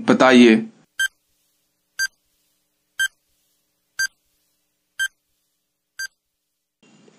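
A timer beeps once every second.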